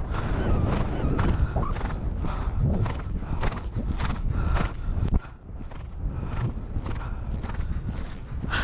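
A horse's hooves thud on grass at a canter.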